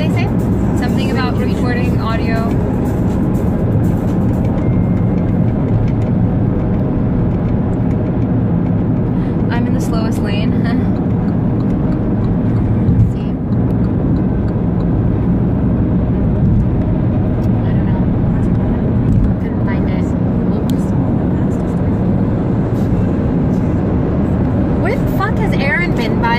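A car engine hums steadily inside the car.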